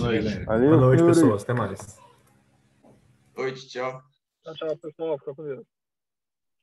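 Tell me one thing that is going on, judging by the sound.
A man talks over an online call.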